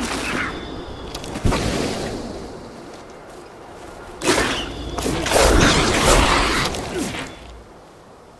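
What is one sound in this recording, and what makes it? A sword swishes and strikes with heavy impacts.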